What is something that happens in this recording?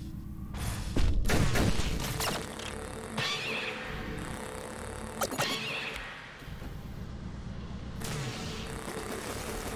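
Laser shots zap from a game.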